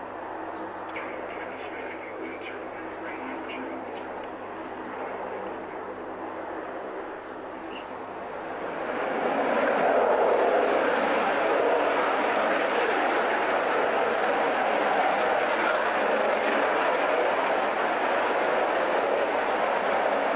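A twin-engine military jet runs up to high power, its roar swelling.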